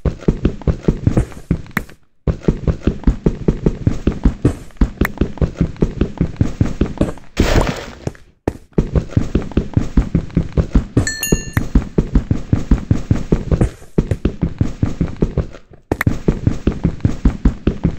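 Rapid, steady tapping of a pickaxe chipping at stone.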